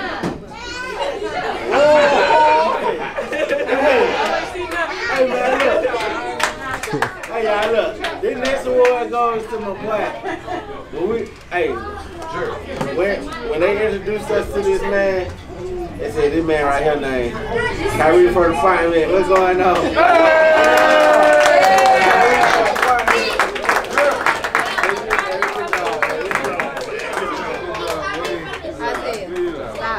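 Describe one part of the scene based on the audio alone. A crowd of adults and children chatters and cheers.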